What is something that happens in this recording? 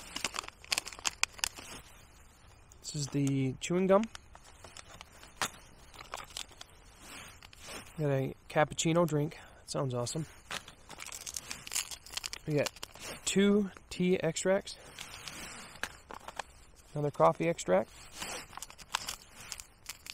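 Foil and paper packets crinkle and rustle as they are handled.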